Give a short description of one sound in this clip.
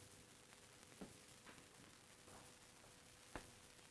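A sheet of paper rustles in a man's hands.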